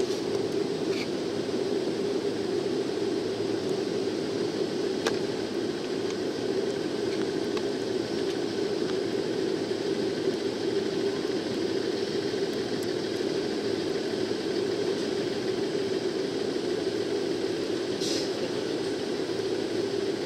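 Steel wheels click over the rail joints.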